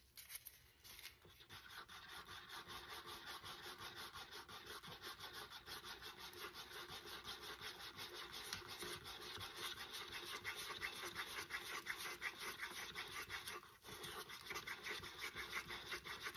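A stick stirs rapidly in a paper cup, scraping against its sides.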